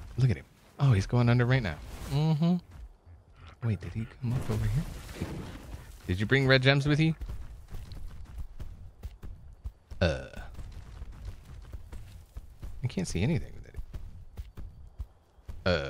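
Heavy footsteps thud softly on grass.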